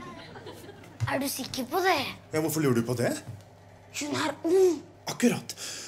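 A young boy speaks nearby in a questioning tone.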